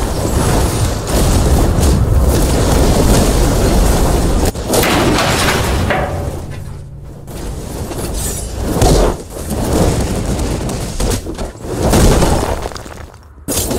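A heavy blow smashes stone ground, which cracks and crumbles.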